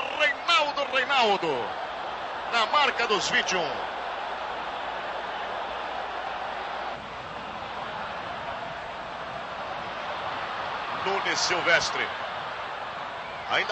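A large stadium crowd roars steadily.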